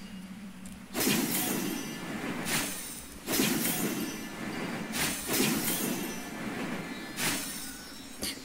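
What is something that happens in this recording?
Gusts of wind whoosh past in bursts.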